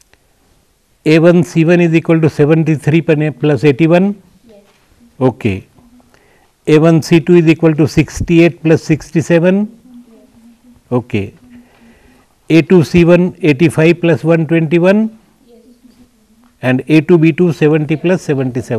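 An elderly man speaks calmly and clearly into a close microphone, in bursts with pauses.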